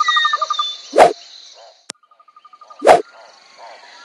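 Jaws snap shut with a sharp crack.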